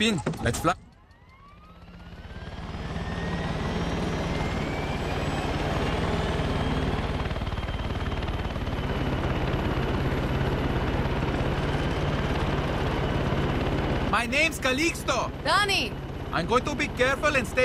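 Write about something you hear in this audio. A helicopter engine starts up, whines higher and drones steadily.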